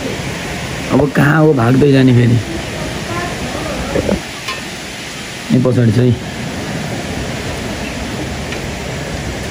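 Steady rain patters on leaves and the ground outdoors.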